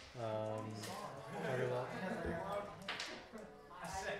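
Plastic game pieces click on a table.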